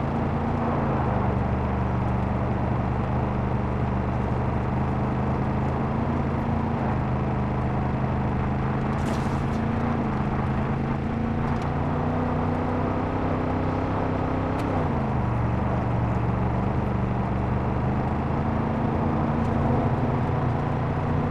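A car engine hums steadily, its pitch rising and falling with the throttle.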